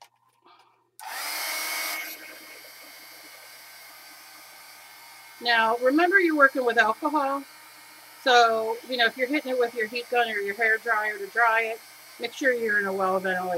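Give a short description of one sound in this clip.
A heat gun blows with a steady, hissing whir.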